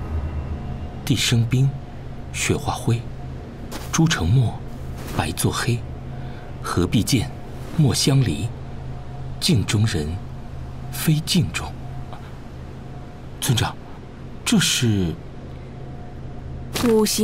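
A young man speaks.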